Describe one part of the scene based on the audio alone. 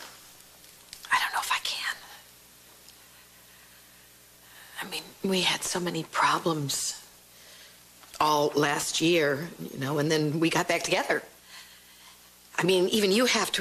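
A middle-aged woman speaks emotionally, close by.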